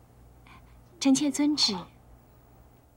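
A woman answers softly nearby.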